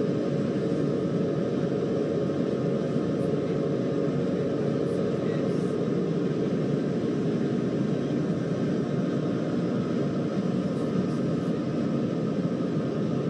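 A train's wheels rumble steadily along the rails.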